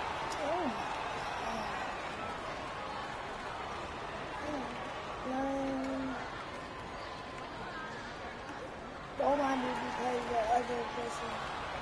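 Basketball shoes squeak sharply on a hardwood court.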